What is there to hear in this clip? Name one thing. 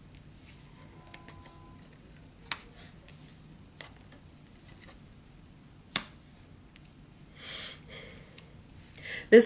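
Cards tap and slide softly on a cloth-covered table.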